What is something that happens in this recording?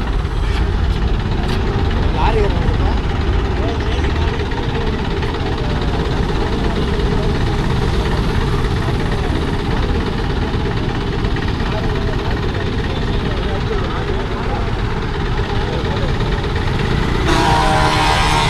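Wind buffets loudly outdoors.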